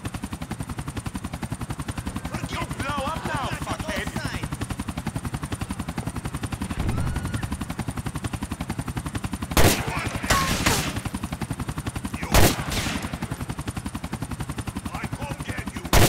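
A helicopter's rotor chops steadily overhead.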